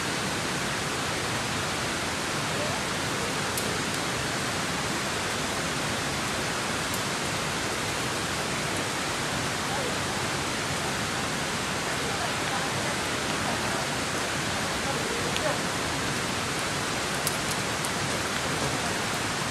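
A climber's hands and shoes scrape softly against rock.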